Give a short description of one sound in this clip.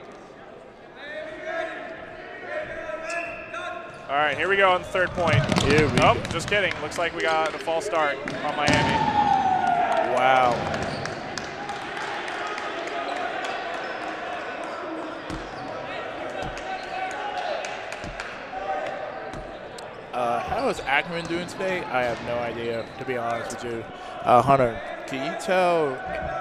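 A crowd of young people shouts and cheers in a large echoing gym.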